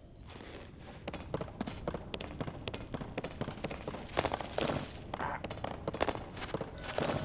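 Footsteps patter over grass and rocky ground.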